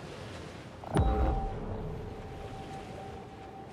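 A sudden deep thud booms, then rings out.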